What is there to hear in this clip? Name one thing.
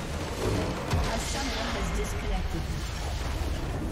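A large crystal structure explodes with a deep, rumbling boom.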